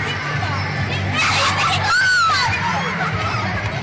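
A young girl laughs.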